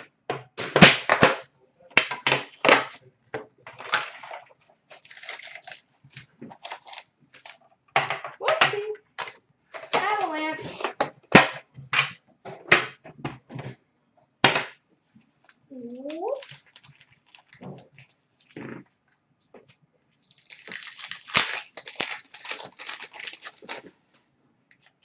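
Card packs in plastic wrap rustle and tap as they are handled close by.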